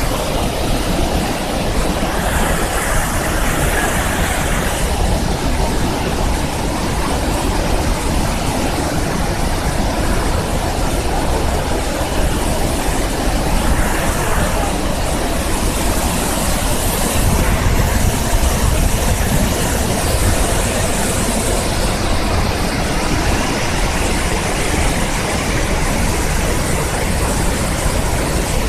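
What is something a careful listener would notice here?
Rushing water churns over rocks.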